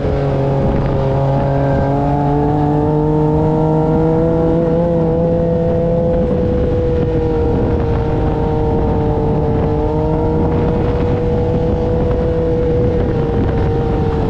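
Wind rushes past in the open air.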